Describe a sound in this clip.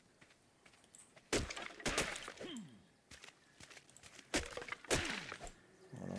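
A hatchet chops into wood with dull knocks.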